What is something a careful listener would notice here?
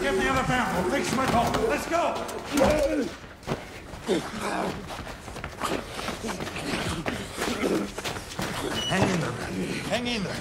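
Footsteps shuffle quickly on a hard floor.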